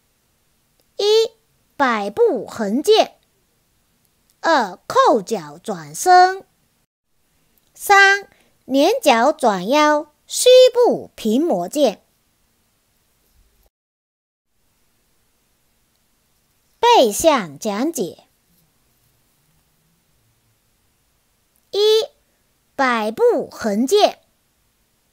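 A woman speaks calmly and clearly, close up.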